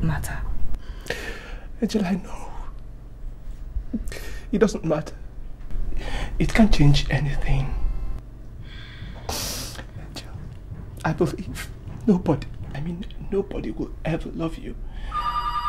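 A man speaks close by in an emotional, pleading voice.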